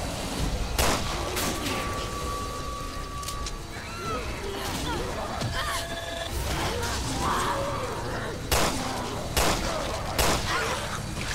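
Gunshots ring out in sharp, loud bangs.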